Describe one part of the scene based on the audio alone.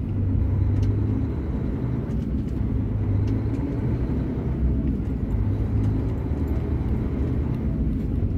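A vehicle engine rumbles steadily while driving along a wet road.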